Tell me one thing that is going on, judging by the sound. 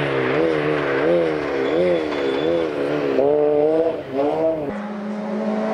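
A rally car engine revs hard and shifts gears as the car climbs toward the listener.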